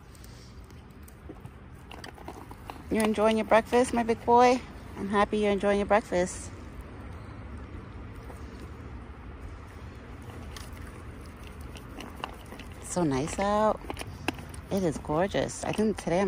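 A deer licks and chews food from a bowl close by.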